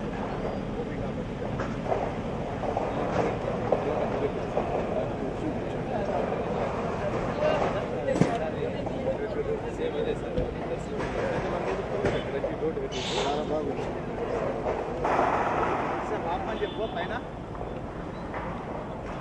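Several men talk at once nearby, outdoors.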